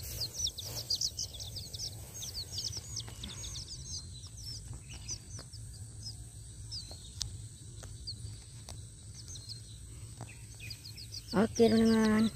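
Chicks peep rapidly and shrilly close by.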